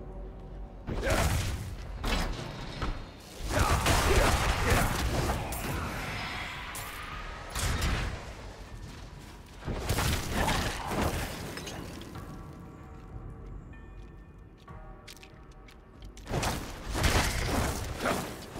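Fiery spell blasts whoosh and crackle loudly in bursts.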